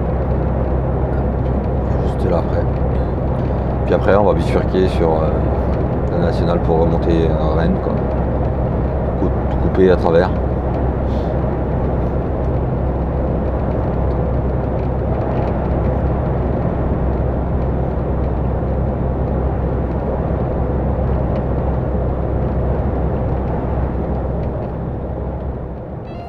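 A vehicle's engine hums steadily while driving.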